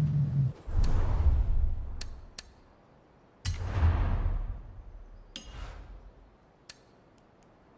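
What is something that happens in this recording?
Game menu sounds whoosh and click as selections change.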